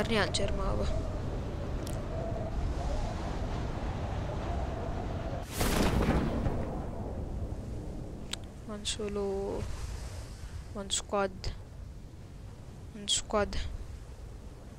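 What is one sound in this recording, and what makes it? Wind rushes steadily past during a fast freefall.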